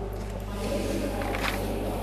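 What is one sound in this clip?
Volleyball players slap hands in a high five.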